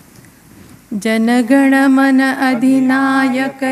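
A woman sings steadily into a microphone in a large hall.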